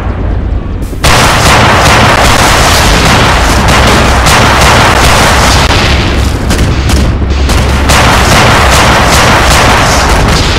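A loud blast bursts, followed by roaring, crackling explosions.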